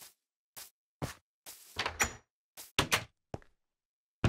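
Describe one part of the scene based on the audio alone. A wooden trapdoor clacks open.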